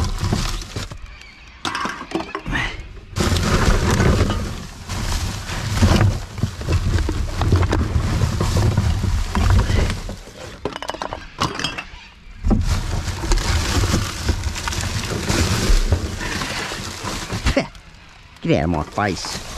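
Plastic bottles clatter as they are tossed onto a pile of bottles and cans.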